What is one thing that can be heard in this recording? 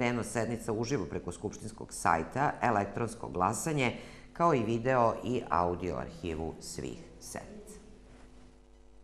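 A woman speaks clearly and calmly into a microphone.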